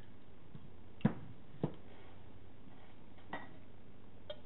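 A plastic scoop knocks against ceramic mugs.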